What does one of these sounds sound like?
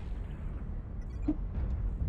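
Pulse lasers fire in rapid bursts in a mech combat game.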